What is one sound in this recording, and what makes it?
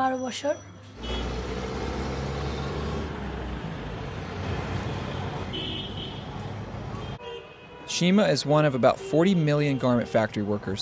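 Traffic rumbles along a busy street outdoors.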